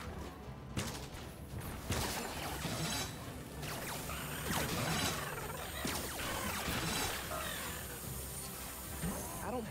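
Electric zaps crackle and buzz again and again.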